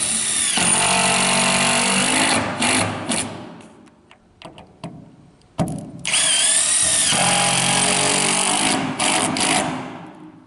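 A cordless drill whirs in loud bursts as it drives screws into wood.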